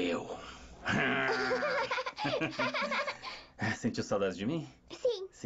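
A young girl laughs.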